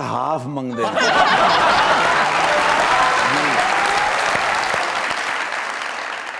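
An audience claps and cheers.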